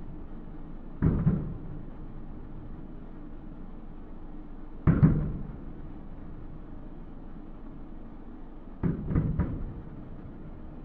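Fireworks burst with deep, distant booms that echo out.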